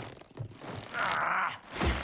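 A wooden staff swishes through the air.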